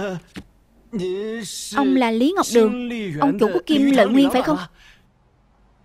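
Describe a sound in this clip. A young man speaks with excitement, up close.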